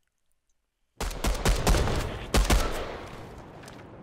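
Loud, noisy game sound effects burst in suddenly with sharp thumps.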